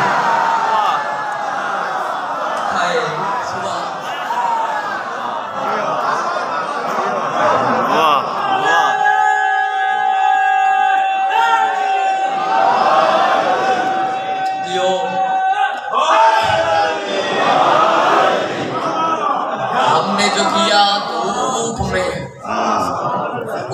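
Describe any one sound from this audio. A young man sings loudly into a microphone over a loudspeaker in an echoing hall.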